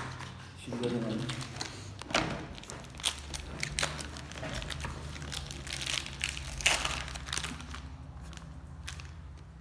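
Plastic packaging crinkles and rustles as it is torn open.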